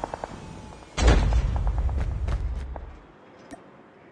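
A heavy crate lands with a deep boom.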